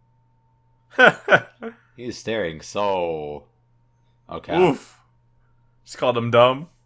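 A man laughs over a microphone.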